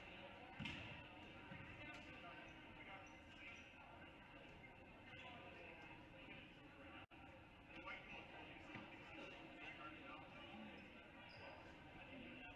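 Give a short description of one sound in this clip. A crowd murmurs throughout a large echoing gym.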